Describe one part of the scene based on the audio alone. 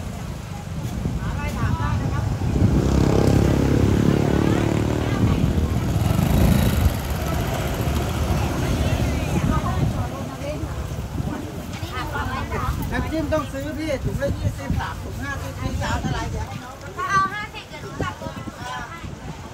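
A crowd of men and women chatters nearby, outdoors.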